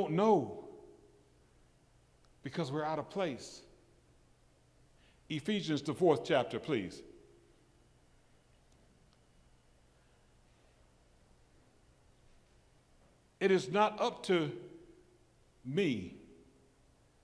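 An older man speaks with animation into a microphone, in bursts with pauses, in a large echoing hall.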